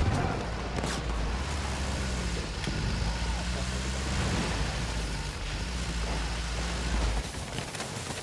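An armoured car's engine rumbles low and steady.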